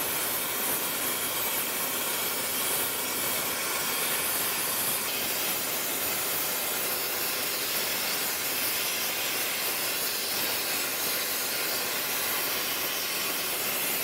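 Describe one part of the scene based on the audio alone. A gas torch hisses steadily.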